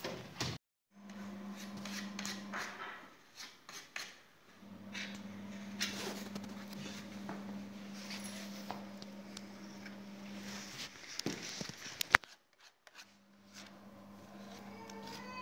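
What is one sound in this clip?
Light knocks sound as a wooden post is fitted against a stair.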